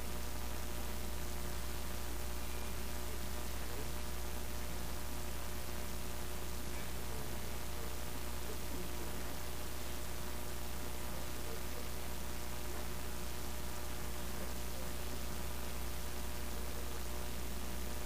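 A man speaks faintly into a microphone in a large room.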